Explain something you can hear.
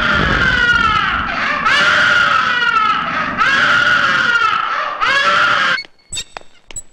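A toddler cries loudly and wails.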